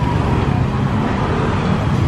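A motorbike engine rumbles as it passes.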